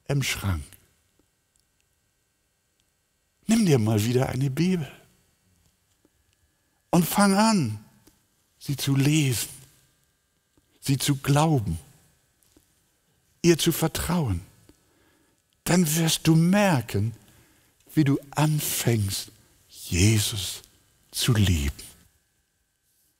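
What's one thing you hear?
An elderly man speaks calmly into a microphone, in short bursts with pauses.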